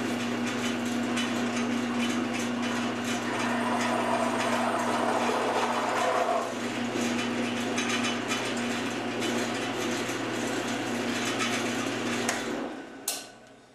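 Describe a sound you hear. A milling cutter grinds through metal.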